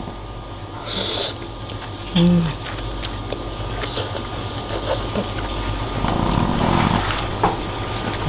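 A woman slurps noodles loudly.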